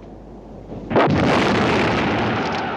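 A loud explosion bursts.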